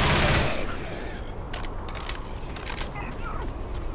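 A gun's magazine clicks out and snaps back in.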